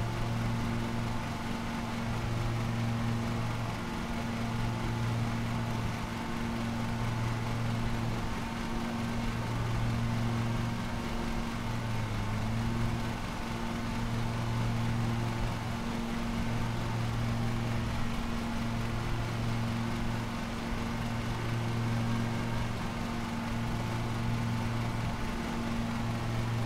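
A lawn mower engine drones steadily.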